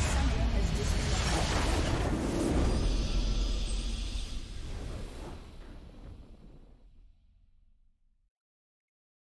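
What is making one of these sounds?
A game's victory fanfare booms out and slowly fades away.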